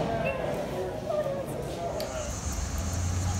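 A young woman speaks calmly to a dog close by.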